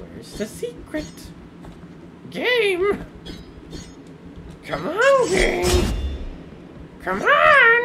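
A sword swishes and slashes through the air.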